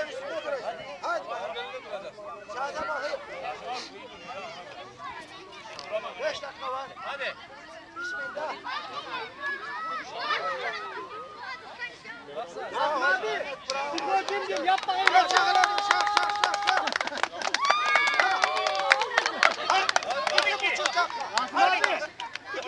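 A group of men chatter outdoors nearby.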